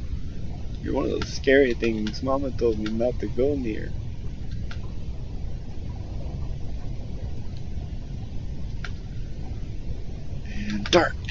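A low, steady underwater rumble fills the background.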